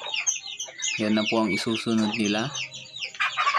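A rooster crows loudly.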